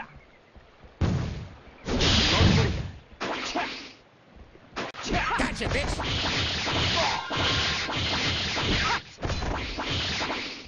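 Video game sword slashes and magic blasts crash in bursts.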